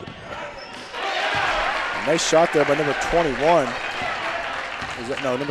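A crowd in a large echoing gym cheers loudly.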